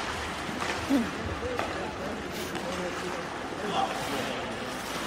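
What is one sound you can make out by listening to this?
Skates scrape across the ice in a large echoing arena.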